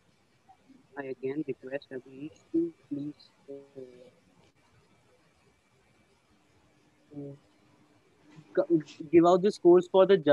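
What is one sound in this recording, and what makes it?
Another young man talks with animation over an online call.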